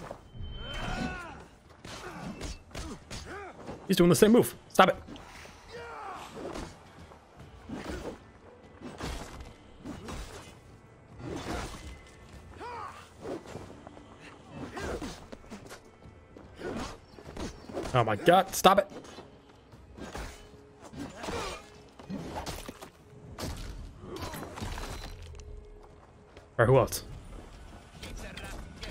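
A young man talks with animation, close to a microphone.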